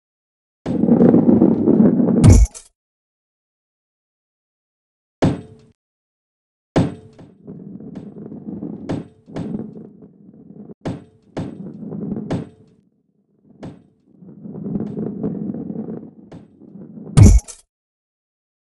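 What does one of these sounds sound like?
A heavy ball rolls and rumbles along a track.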